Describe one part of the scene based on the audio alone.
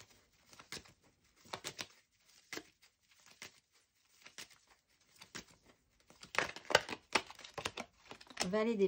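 Playing cards riffle and flick as a deck is shuffled.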